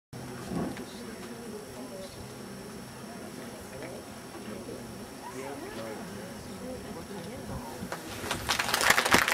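A crowd of spectators murmurs and chatters nearby, outdoors.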